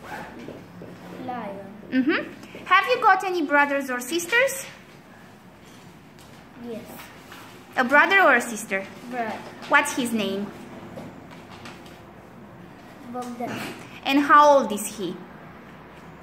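A young girl speaks calmly and close by, in short bursts with pauses.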